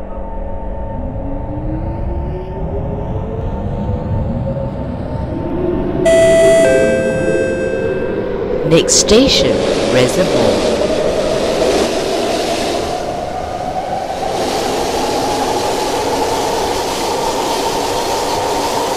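A train's electric motor whines, rising steadily in pitch as the train speeds up.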